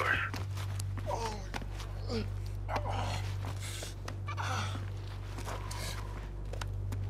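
A wounded man groans and gasps in pain.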